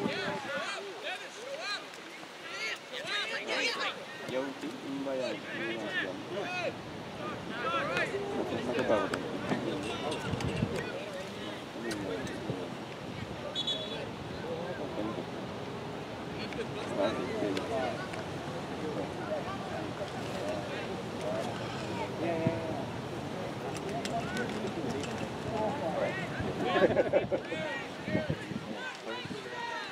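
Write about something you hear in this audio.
Young players and spectators shout and call out across an open field outdoors.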